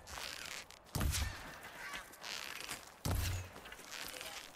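A bowstring twangs as arrows are shot.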